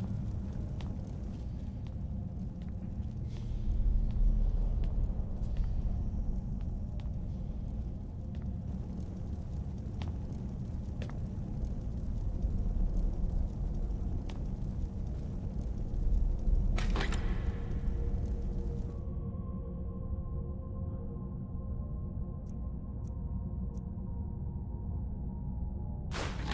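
Flames crackle softly.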